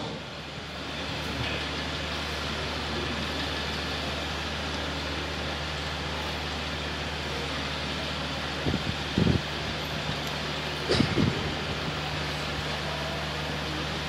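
Fans hum steadily.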